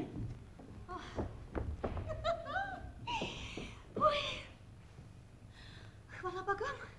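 A woman exclaims and sighs dramatically.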